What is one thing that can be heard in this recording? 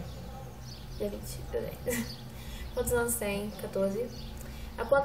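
A young woman reads aloud close by.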